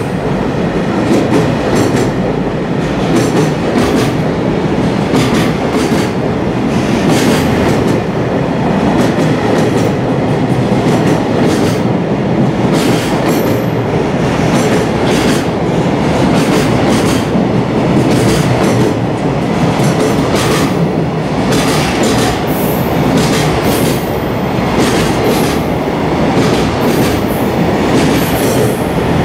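A freight train rumbles steadily past close by, echoing under a platform roof.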